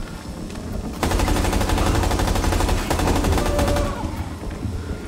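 An automatic rifle fires in a rapid burst.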